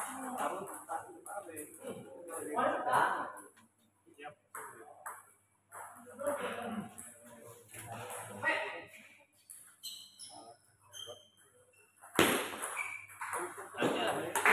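Table tennis balls click sharply off paddles and tables in a rally.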